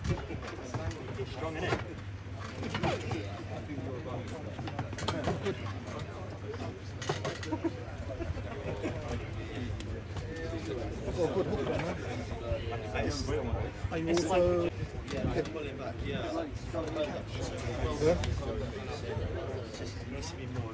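A crowd of men talks and cheers outdoors nearby.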